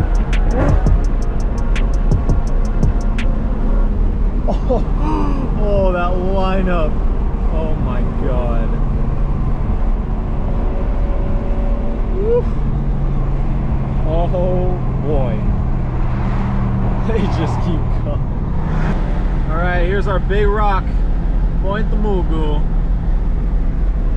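Tyres roar on the road from inside a car.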